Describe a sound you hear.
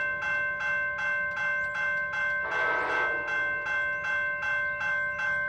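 A train horn sounds in quick repeated blasts in the distance.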